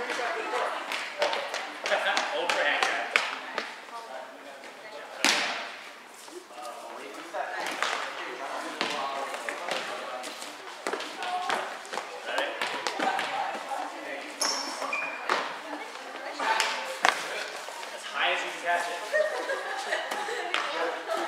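A volleyball is struck with sharp slaps, echoing in a large hall.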